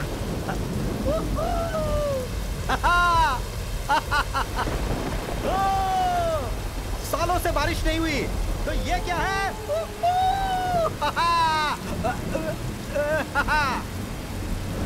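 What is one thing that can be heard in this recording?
A man shouts and cries out to the sky with emotion.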